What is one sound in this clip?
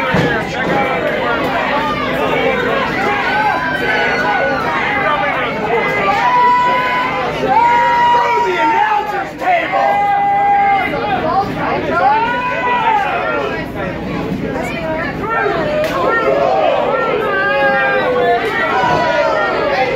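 A crowd cheers and shouts throughout, in a large echoing hall.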